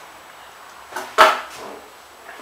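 Scissors are set down on a wooden board.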